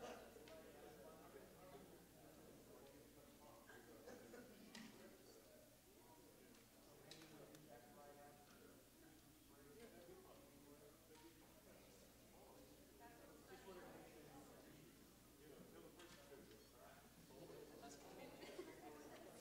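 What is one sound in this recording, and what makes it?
An audience murmurs and chatters quietly in a large hall.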